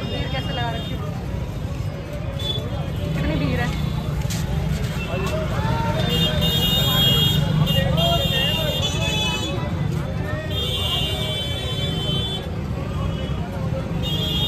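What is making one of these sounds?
A crowd of men and women chatter in a busy outdoor street.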